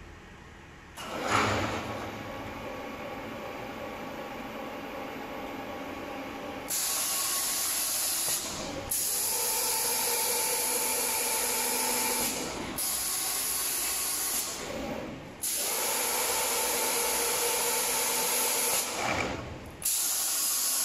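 A robotic arm's motors whir and hum as the arm moves.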